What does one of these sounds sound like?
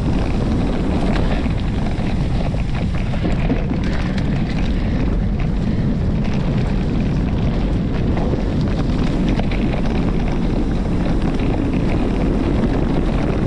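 Wind rushes loudly and steadily past a microphone outdoors.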